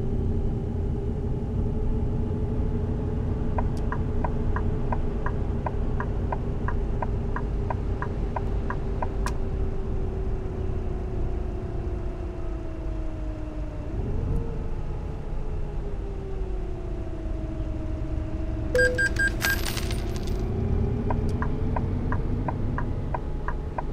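A bus engine hums steadily, its pitch dipping as the bus slows and rising again.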